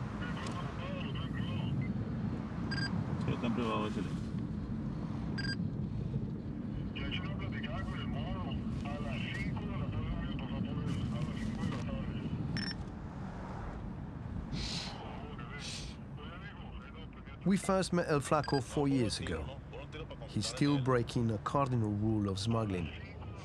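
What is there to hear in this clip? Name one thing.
A car engine hums steadily with road noise while driving.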